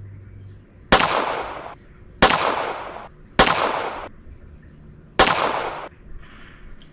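A rifle fires loud shots that ring out.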